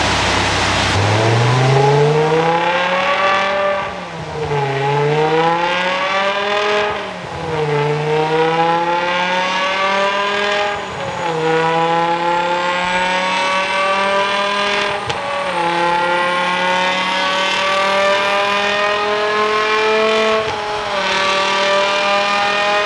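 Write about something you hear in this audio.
A powerful car engine revs hard, climbing in pitch again and again with brief dips between gear changes.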